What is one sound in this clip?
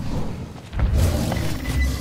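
A large creature roars during an attack.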